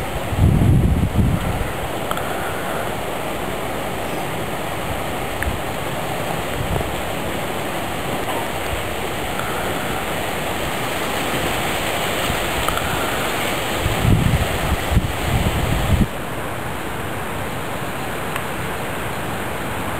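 A broom swishes and scrapes across grass.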